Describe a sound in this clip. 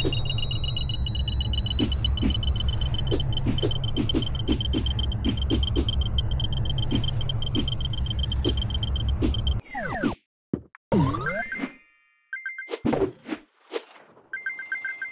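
Coins chime in quick succession as they are picked up in a video game.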